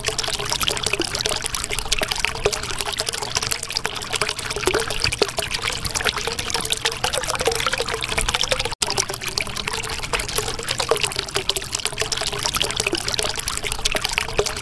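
Bubbles gurgle and pop steadily underwater.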